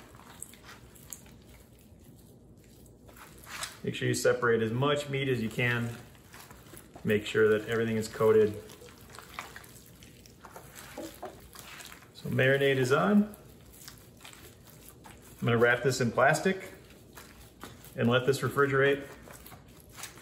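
Hands squish and knead soft ground meat.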